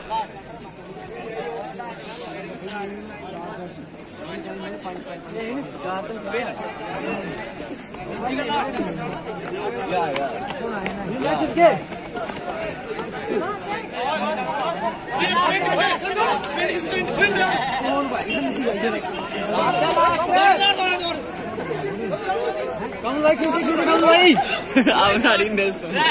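A crowd of young men shouts and cheers nearby outdoors.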